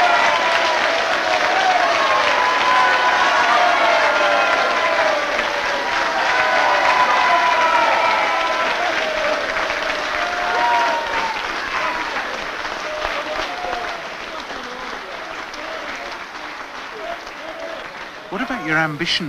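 A large crowd cheers and applauds in an echoing hall.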